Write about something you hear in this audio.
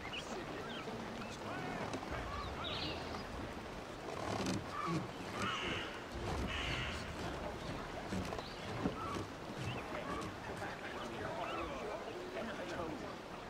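Water laps gently against a wooden ship's hull.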